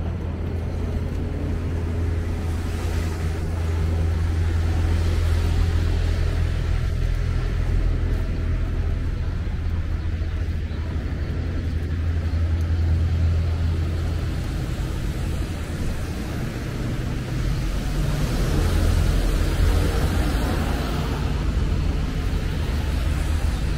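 Light rain patters on the pavement.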